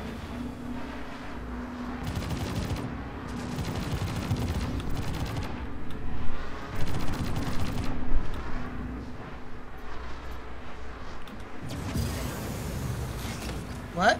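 A spacecraft engine hums and roars steadily, rising and falling in strength.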